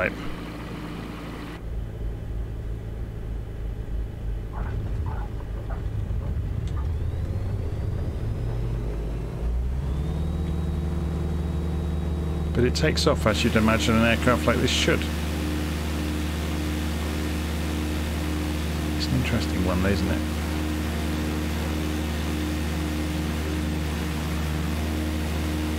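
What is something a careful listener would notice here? A small propeller plane's engine drones steadily and grows louder as it speeds up.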